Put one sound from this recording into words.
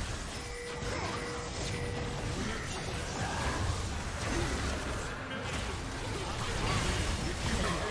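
Game combat effects crackle, whoosh and blast.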